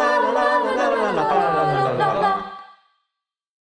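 A young woman sings a solo line.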